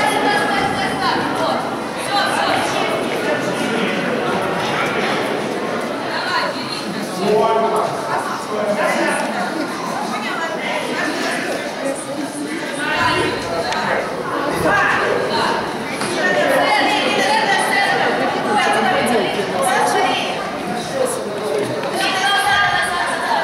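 A crowd of adults and children chatters in an echoing hall.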